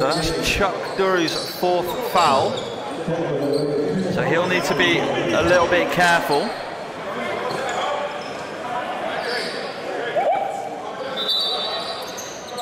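Young men shout and call out to each other in an echoing gym.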